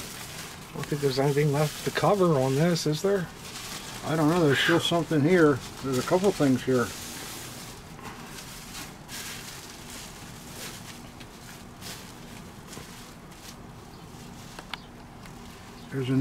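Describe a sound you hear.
Plastic bubble wrap rustles and crinkles.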